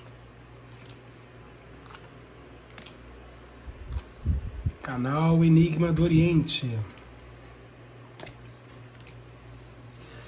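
Playing cards slide and tap softly onto a table.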